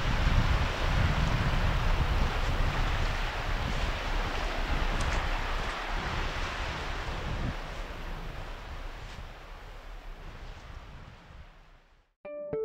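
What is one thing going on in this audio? Small waves wash onto a sandy shore and break softly.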